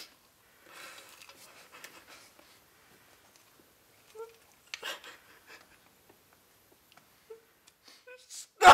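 A young man sobs and whimpers close by.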